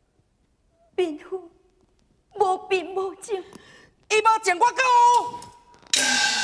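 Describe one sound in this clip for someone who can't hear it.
A young woman sings in a high, wavering voice through a microphone.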